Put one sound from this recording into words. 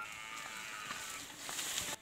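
Leafy branches rustle and brush against a wall.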